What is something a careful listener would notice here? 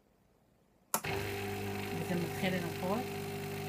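An espresso machine's pump hums loudly and steadily.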